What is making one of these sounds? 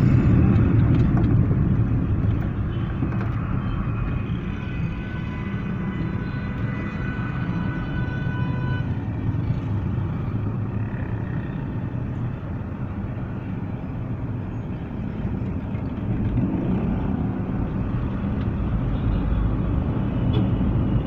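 A motorcycle engine passes close by outside a car.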